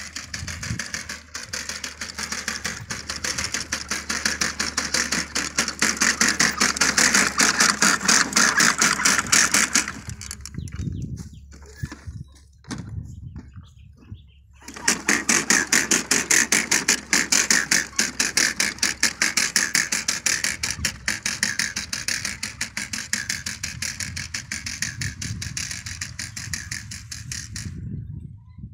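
A hand-pushed seeder rattles and clicks rapidly as it rolls over dry soil.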